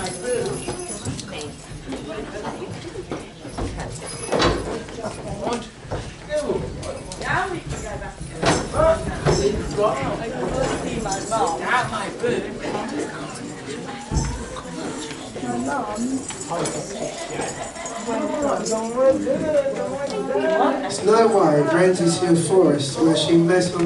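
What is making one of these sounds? A young man speaks into a microphone through loudspeakers in a large echoing hall.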